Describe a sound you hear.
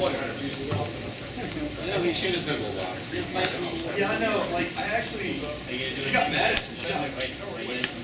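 Cards riffle and flick as they are shuffled in the hands.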